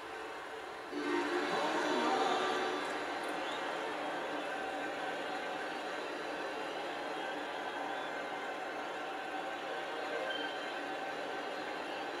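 A game crowd cheers loudly through a television speaker.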